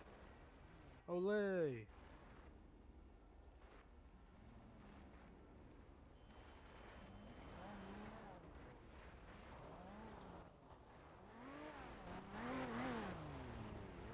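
Car engines rev up and down loudly as cars drift.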